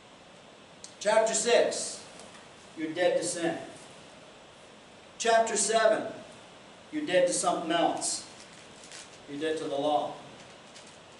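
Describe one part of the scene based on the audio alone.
An older man speaks in bursts to a room, pausing between phrases.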